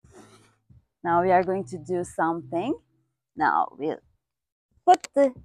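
A young woman speaks calmly and clearly, close to a microphone.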